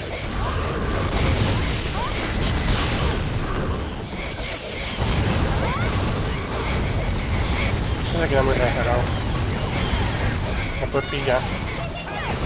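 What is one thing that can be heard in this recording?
Fiery spell blasts explode again and again in a video game battle.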